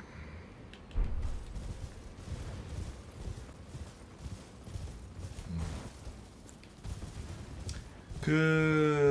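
A horse gallops over soft ground.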